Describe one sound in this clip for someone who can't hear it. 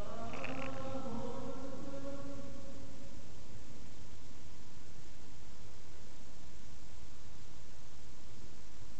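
Fur rubs and rustles right against the microphone.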